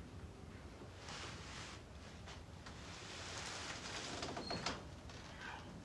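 A man speaks quietly and tensely, close by.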